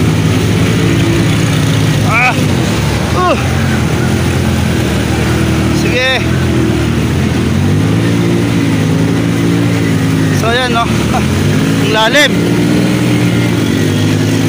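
A motorbike engine hums and revs steadily close by.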